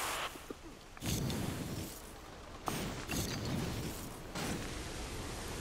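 Flames whoosh and burst in quick gusts.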